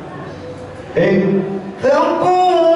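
An elderly man chants loudly into a microphone, heard through a loudspeaker in an echoing room.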